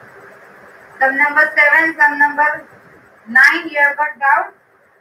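A woman speaks with animation close to a clip-on microphone.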